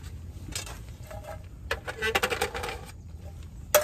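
A metal pan clatters as it is lifted and handled.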